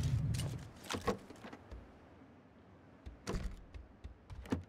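Footsteps thud.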